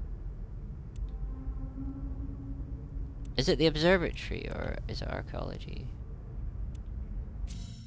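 Soft menu clicks tick as selections change.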